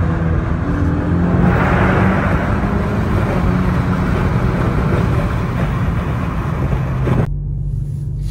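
A car engine roars loudly as it accelerates hard.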